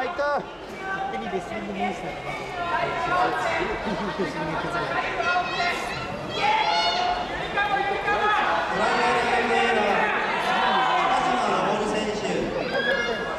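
A crowd of men and women shout and cheer in a large echoing hall.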